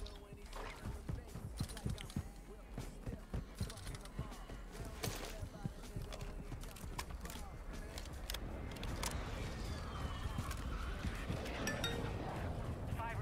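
Gear rattles and clinks as a rifle is handled.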